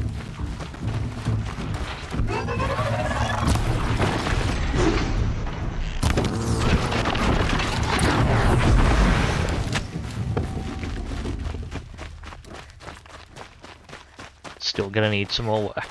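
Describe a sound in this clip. Footsteps run over dirt and gravel.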